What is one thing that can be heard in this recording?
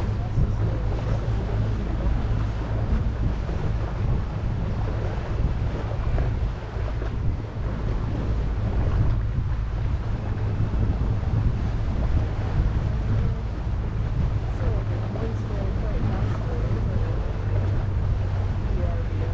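Wind blows noisily across a microphone outdoors.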